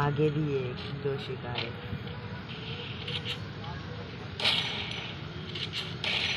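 Game gunshots and effects play through a small phone speaker.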